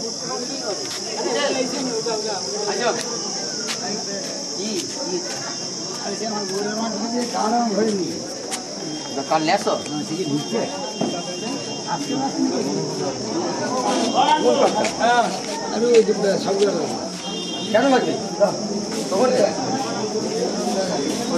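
A crowd of men talks and murmurs nearby, with voices overlapping.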